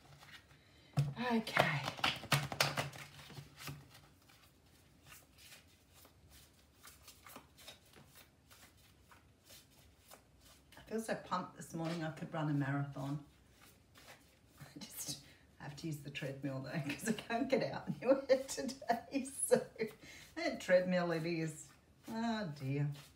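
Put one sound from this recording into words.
A woman speaks calmly and closely, as if into a microphone.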